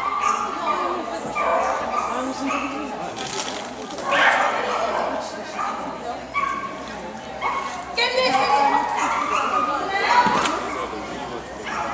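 A young woman calls out commands to a dog with animation in a large echoing hall.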